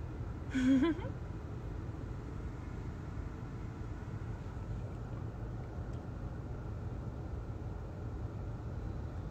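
A car engine rumbles low and steady inside the cabin.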